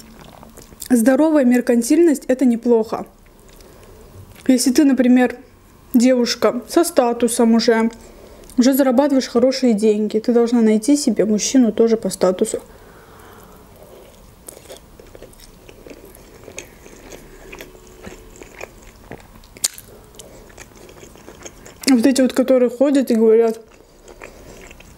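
A young woman speaks softly and calmly, close to a microphone.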